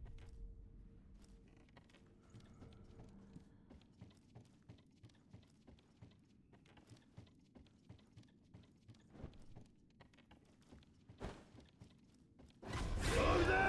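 Footsteps patter quickly across a wooden floor.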